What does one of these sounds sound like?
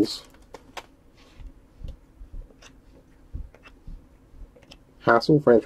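Trading cards slide against each other.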